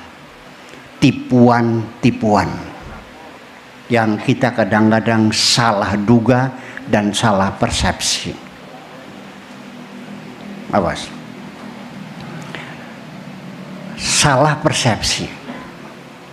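An elderly man speaks slowly and with emphasis through a microphone, in bursts with pauses.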